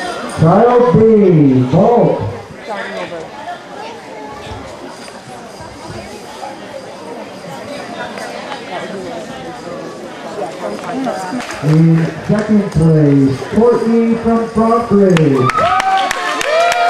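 A crowd of children chatters in a large echoing hall.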